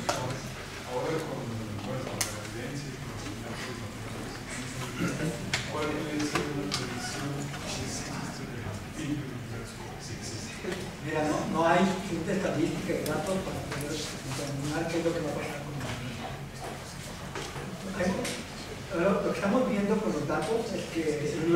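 A man speaks to an audience through a microphone in an echoing hall.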